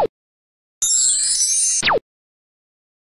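A small bell rings.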